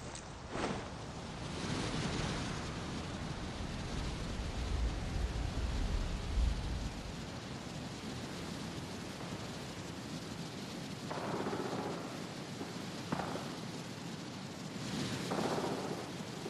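Wind rushes steadily past during a long fall.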